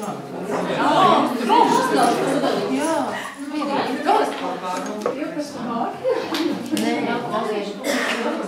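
Feet shuffle and step on a hard floor.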